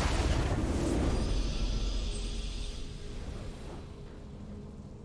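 A triumphant game fanfare swells loudly and fades away.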